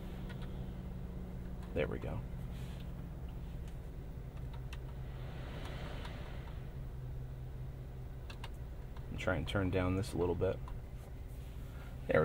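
Buttons and knobs click as they are pressed and turned.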